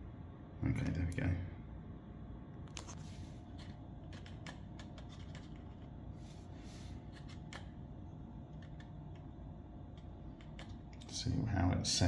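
A plastic device knocks softly against a paper cup.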